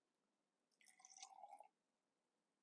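Water pours into a glass.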